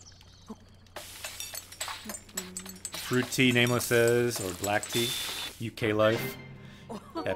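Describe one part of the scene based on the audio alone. A cooking pot clatters and sizzles.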